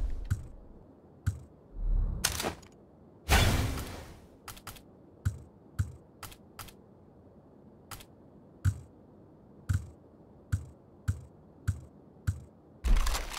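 Menu clicks tick rapidly as weapons are scrolled through.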